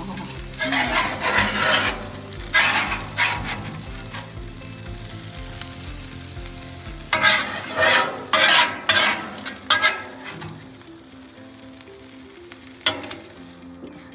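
A metal spatula scrapes across a griddle.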